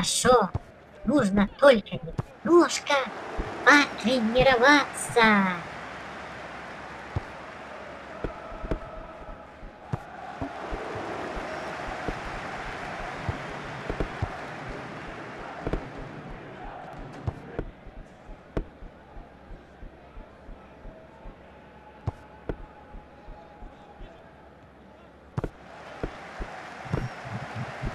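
A ball is kicked again and again.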